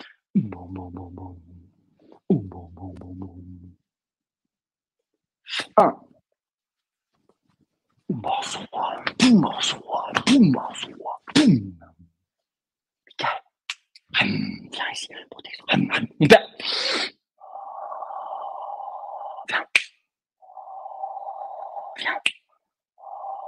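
A man makes loud, breathy vocal sounds close to a microphone, in short bursts.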